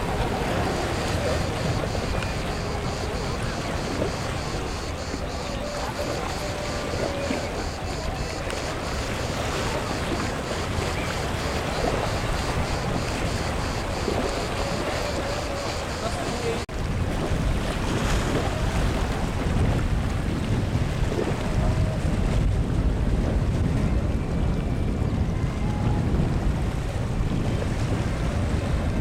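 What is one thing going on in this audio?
Small waves lap gently on the shore.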